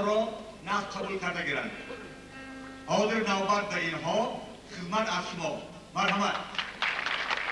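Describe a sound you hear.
An older man speaks with feeling into a microphone, heard through loudspeakers in a large hall.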